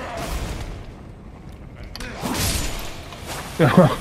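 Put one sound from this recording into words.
Weapons strike and clatter in a fight.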